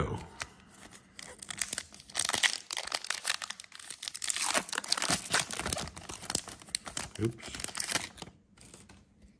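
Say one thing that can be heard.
A foil wrapper crinkles and tears as hands rip it open.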